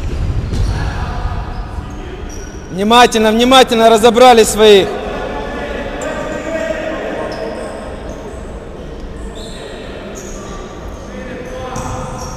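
Shoes squeak on a hard gym floor.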